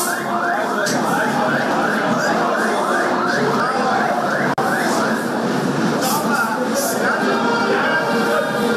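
A crowd of men and women sings and chatters loudly nearby.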